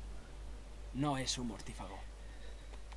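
A man chuckles and speaks briefly.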